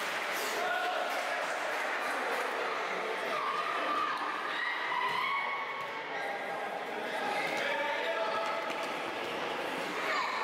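Children shout and call out in an echoing indoor hall.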